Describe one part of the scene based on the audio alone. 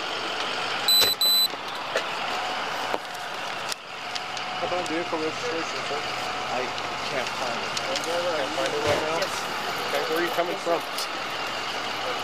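A fire engine's motor idles nearby.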